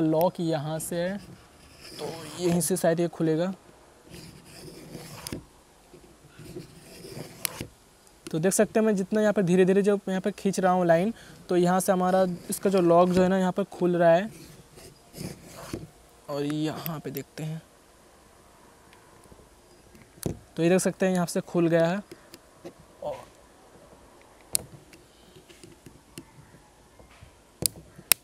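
Plastic casing clicks and creaks as it is pried open.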